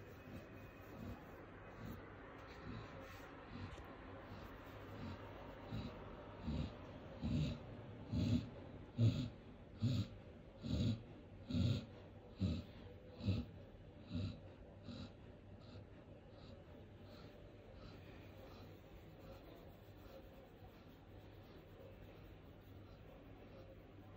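A hand rubs and scratches a dog's thick fur in a steady rhythm.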